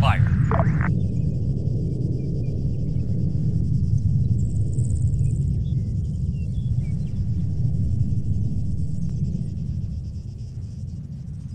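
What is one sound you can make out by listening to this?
A vehicle's engine rumbles.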